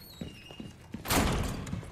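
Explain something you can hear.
A heavy wooden door bangs open.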